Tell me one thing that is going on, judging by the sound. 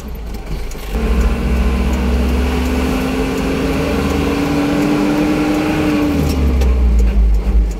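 An engine rises slowly in pitch, then drops away.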